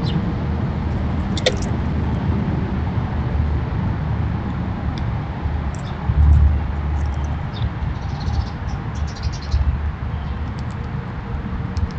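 Squirrels scamper and rustle over dry leaves and bare ground.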